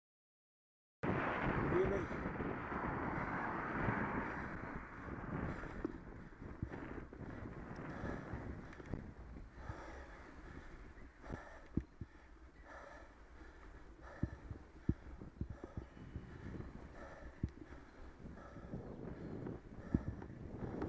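Wind rushes over a microphone.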